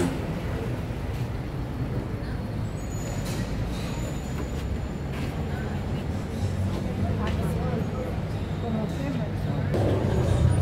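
A crowd of men and women murmur and talk quietly nearby.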